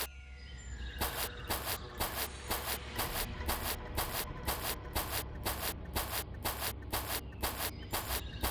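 Footsteps tap steadily and quickly on a hard path.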